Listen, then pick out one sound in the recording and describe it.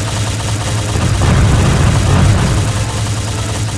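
A loud blast roars and rumbles.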